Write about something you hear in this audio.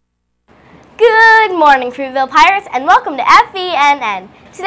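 A young girl speaks clearly into a microphone, announcing with animation.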